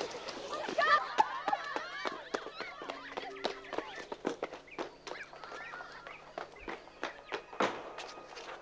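Footsteps run quickly across the ground.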